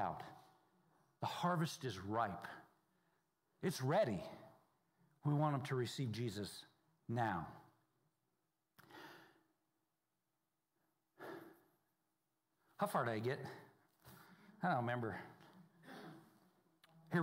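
A middle-aged man speaks with animation through a microphone in a room with some echo, pausing often.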